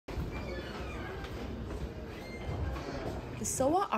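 Footsteps tap along a wooden floor nearby.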